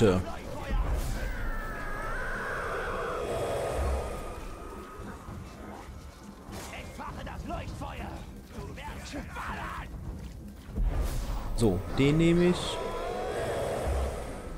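A magical energy blast whooshes and hums.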